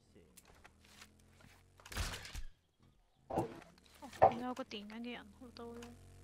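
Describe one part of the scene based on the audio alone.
A crossbow creaks as it is reloaded.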